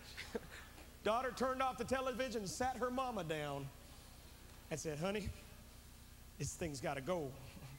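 A man speaks expressively through a microphone in a large echoing hall.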